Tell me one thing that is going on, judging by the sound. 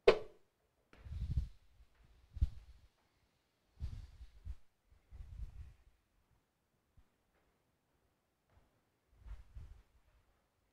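Footsteps thud softly.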